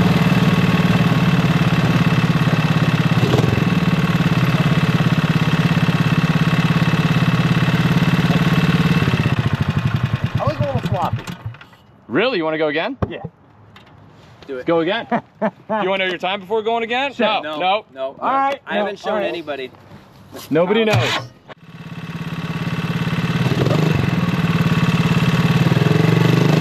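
An engine idles loudly close by.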